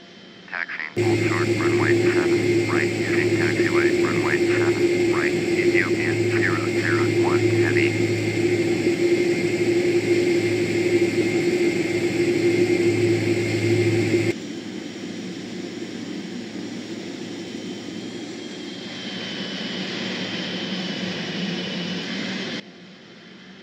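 Jet engines whine and hum steadily nearby.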